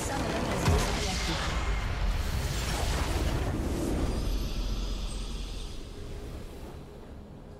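A huge crystal structure shatters with a loud, crashing explosion.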